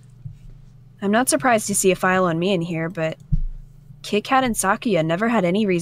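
A young woman reads aloud with animation, close to a microphone.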